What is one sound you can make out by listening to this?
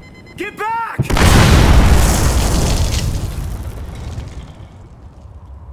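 An explosion booms and roars, then slowly fades.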